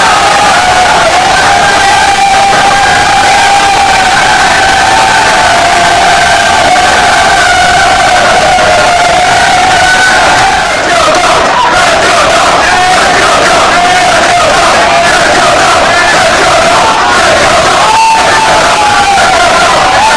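Young men cheer and shout excitedly.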